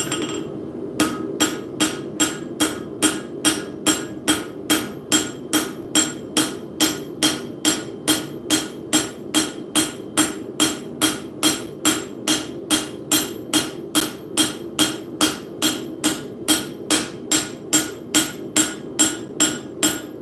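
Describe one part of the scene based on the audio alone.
A hammer rings sharply on an anvil in a fast, steady rhythm.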